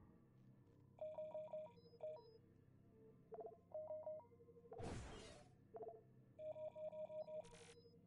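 Short electronic beeps click in quick bursts.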